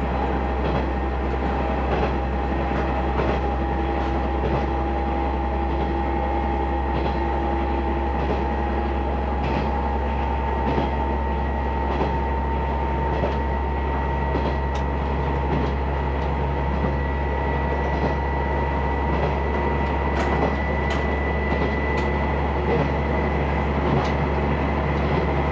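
A vehicle hums steadily as it travels along.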